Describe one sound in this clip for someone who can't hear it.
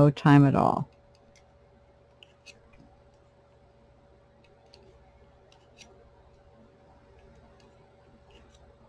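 A hook clicks softly against plastic pegs.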